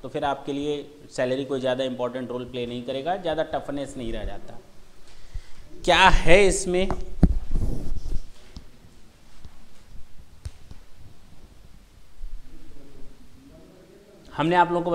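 A man lectures calmly and clearly through a microphone, with pauses.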